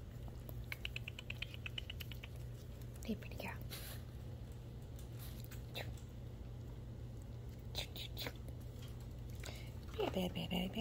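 A hand rubs a kitten's fur against a carpet with soft rustling.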